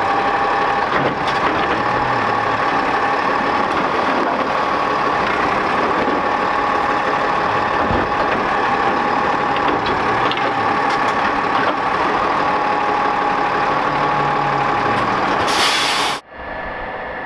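A garbage truck engine whines loudly up close.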